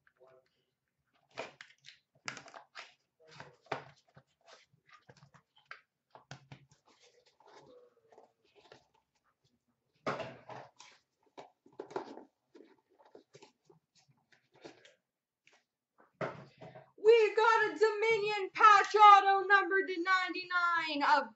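Cardboard boxes and plastic card cases click and rustle as hands handle them.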